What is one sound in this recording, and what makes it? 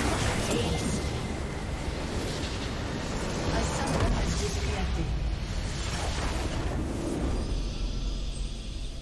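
A structure in a video game explodes with a loud, rumbling blast.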